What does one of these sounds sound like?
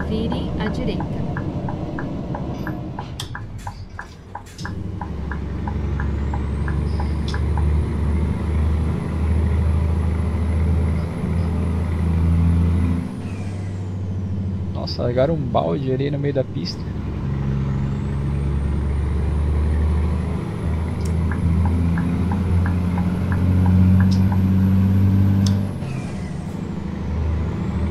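A truck engine drones steadily at low pitch, rising and falling as it changes gear.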